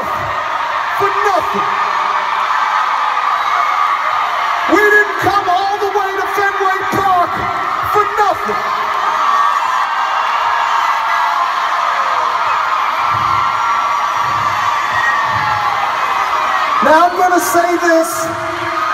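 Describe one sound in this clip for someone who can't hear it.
A huge crowd cheers and screams loudly in a large open arena.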